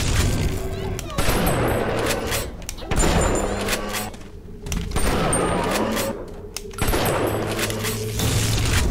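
Electric bolts crackle and zap loudly.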